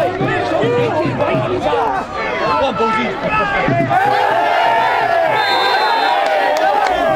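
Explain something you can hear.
A crowd of football supporters chants and sings outdoors.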